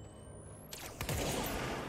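An explosion booms with a roar of fire.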